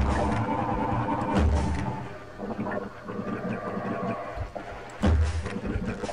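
A large creature growls and roars close by.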